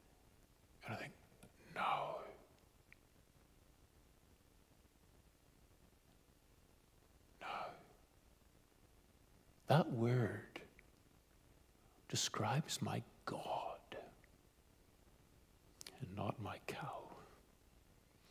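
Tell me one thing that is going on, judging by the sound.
An older man speaks calmly through a microphone, in short bursts with pauses.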